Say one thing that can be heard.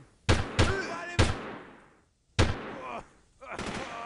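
A rifle fires several loud shots that echo away.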